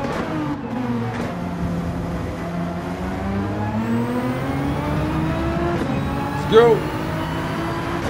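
A racing car engine drones and revs, rising in pitch as the car speeds up.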